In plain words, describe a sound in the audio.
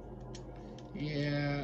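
A video game's tones play from a television speaker.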